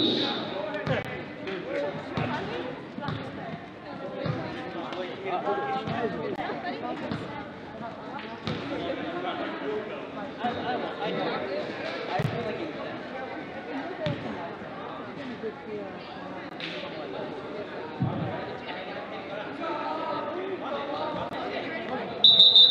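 A basketball bounces on a wooden gym floor.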